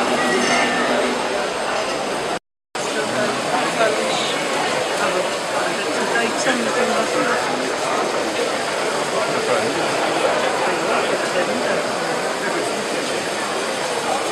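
A chisel scrapes and shaves wood on a spinning lathe.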